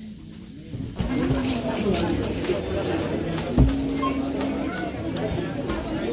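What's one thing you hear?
Plastic packaging rustles as goods are handled at a checkout.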